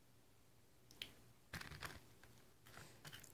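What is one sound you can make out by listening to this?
Fingers pick up a piece of food with a soft tap.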